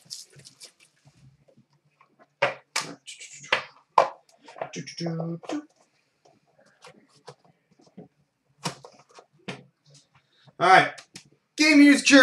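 Plastic card cases click and clatter as they are handled.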